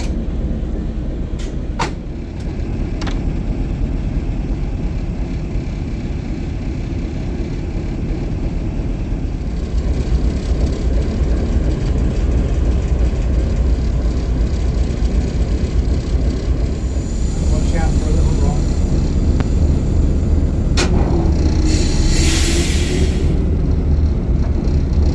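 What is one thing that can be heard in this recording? A diesel locomotive engine idles with a deep, steady rumble.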